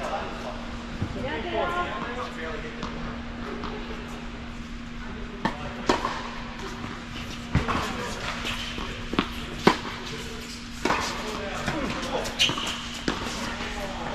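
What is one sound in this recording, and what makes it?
Tennis rackets strike a ball with sharp pops in a large echoing hall.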